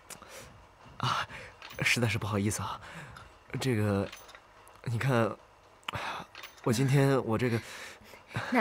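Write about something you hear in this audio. A young man speaks with embarrassment, close by.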